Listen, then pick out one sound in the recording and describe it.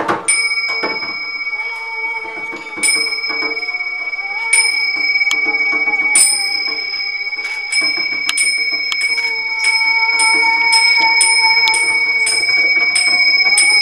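A hand drum beats in a steady rhythm.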